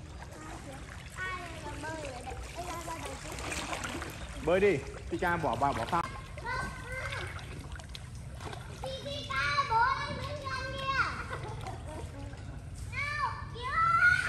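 Children talk and call out in the water nearby.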